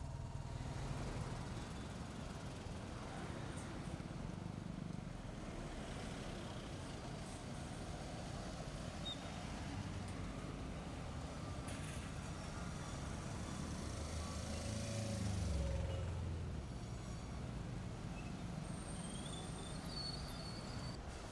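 A bus engine idles and rumbles nearby.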